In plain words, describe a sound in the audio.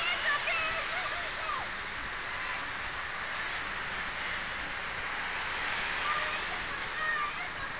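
A large crowd murmurs and calls out in the distance outdoors.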